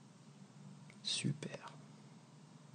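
Water drips from fingers into calm water with small splashes.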